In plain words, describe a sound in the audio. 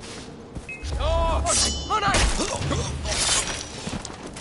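A man cries out sharply during a close struggle.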